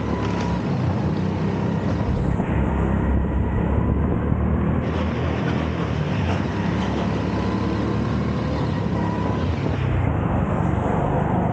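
A go-kart engine buzzes and whines loudly up close.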